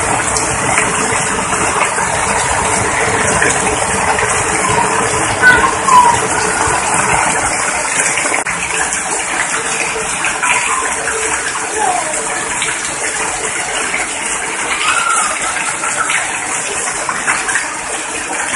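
Rainwater pours and splashes onto the ground.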